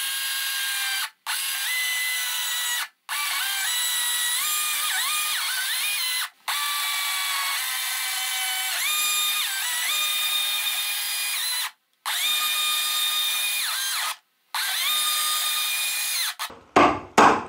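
A cordless chainsaw whines as it cuts into a wooden post.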